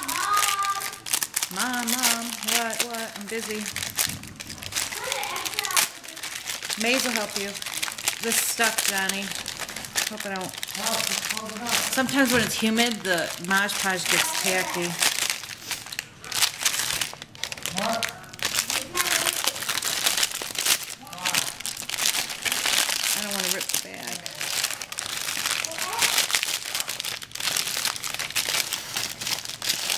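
Paper crinkles and rustles between hands.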